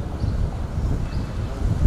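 A car drives along a street.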